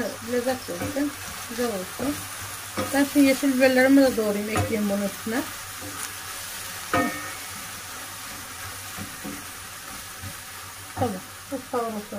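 A wooden spoon scrapes and stirs in a frying pan.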